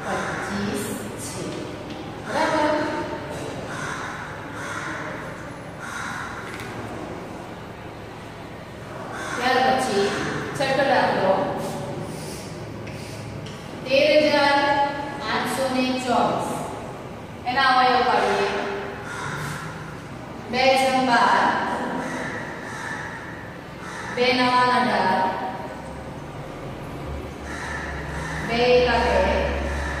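A young woman speaks in a clear, teaching voice close by.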